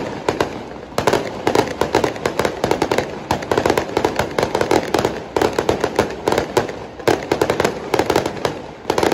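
Fireworks bang loudly overhead.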